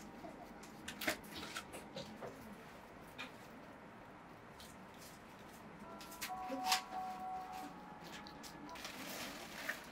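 A stiff brush dabs and taps repeatedly on paper.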